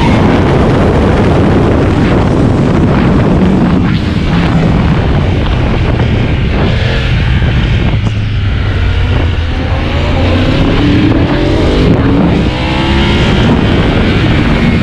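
A motorcycle engine roars loudly at high speed, its pitch rising and falling as it shifts gears.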